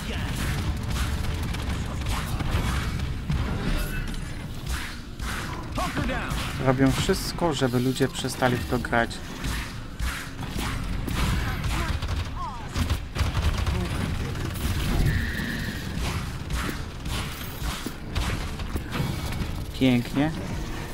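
Rapid gunfire and impacts crackle and thump.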